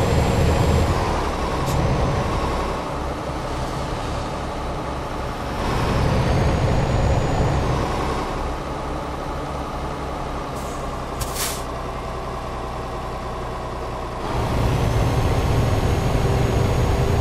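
A truck engine hums steadily, swelling and easing as it drives.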